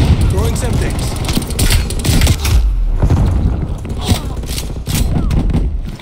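Gunfire bursts rapidly and loudly.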